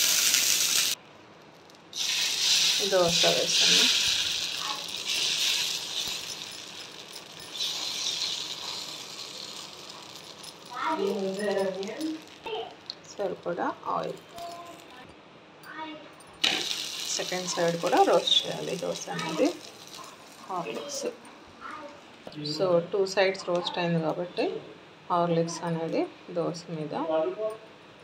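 Batter sizzles on a hot griddle.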